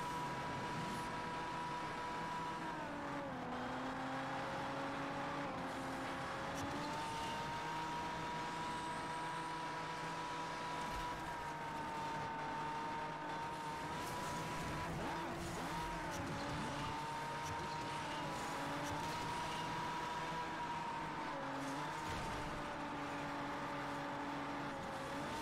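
A racing car engine roars at high speed, its pitch dropping and rising as it shifts and drifts.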